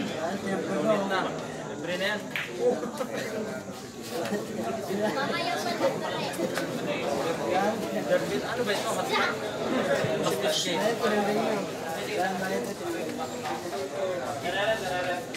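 A crowd of men and women chatters and murmurs nearby.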